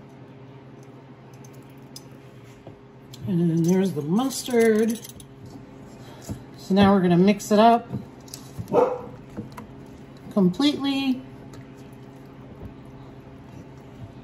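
A spatula scrapes and stirs thick sauce in a metal bowl.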